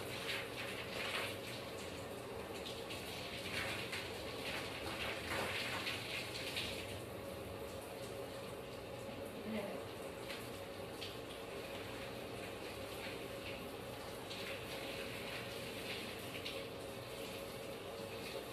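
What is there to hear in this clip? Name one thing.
Hands scrub shampoo lather through a child's wet hair with soft squishing sounds.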